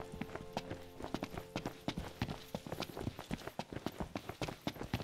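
Quick footsteps run over dry dirt and gravel.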